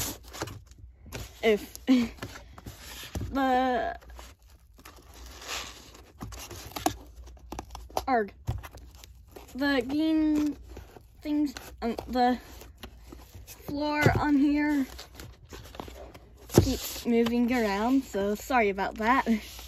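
Paper crinkles and rustles as it is folded and handled.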